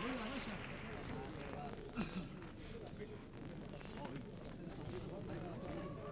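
A group of men sing together.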